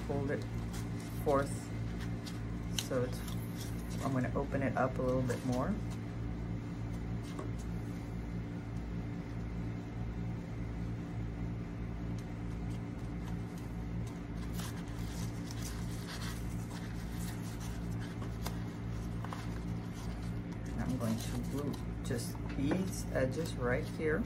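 Paper leaves rustle and crinkle as hands handle them.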